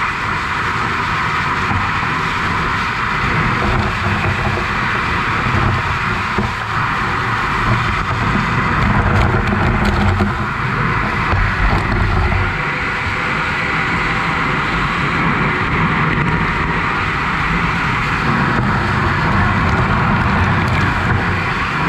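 A fire hose sprays water with a loud steady hiss.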